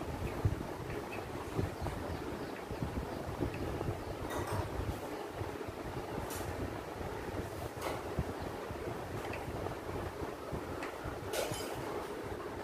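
A knife taps against a hard table as it cuts soft pieces.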